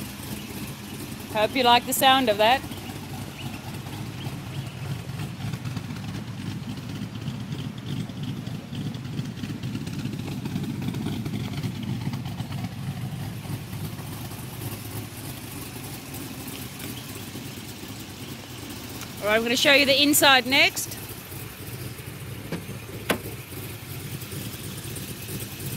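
A V8 car engine rumbles at idle.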